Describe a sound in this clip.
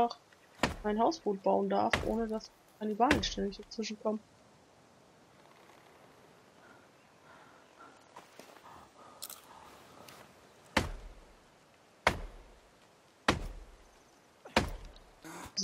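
An axe chops into a tree trunk with sharp wooden thuds.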